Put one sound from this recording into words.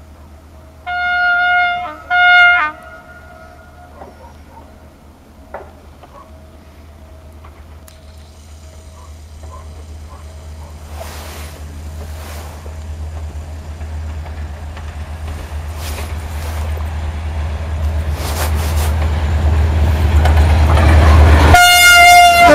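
A diesel train horn blasts twice in long sounds and then again close by.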